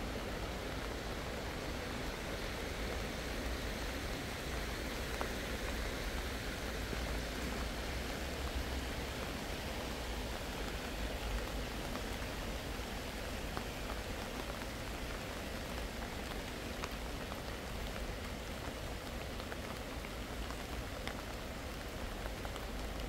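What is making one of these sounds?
Wind blows and rustles through tall grass and flowers.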